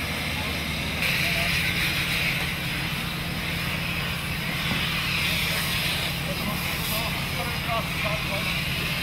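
A hydraulic rescue tool whines as it cuts through a car.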